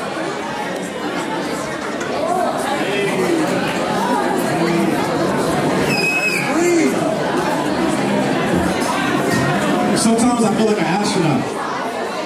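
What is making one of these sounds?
Music with a heavy beat plays loudly through loudspeakers.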